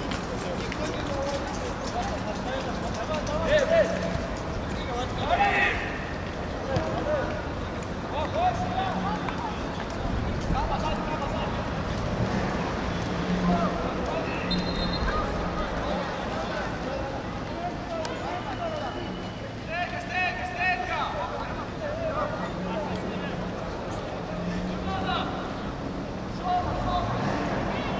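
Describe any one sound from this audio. Players shout to each other across an open outdoor pitch.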